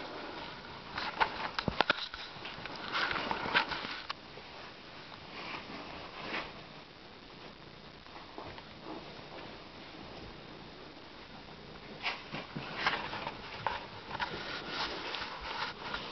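Cloth rustles and brushes against the microphone.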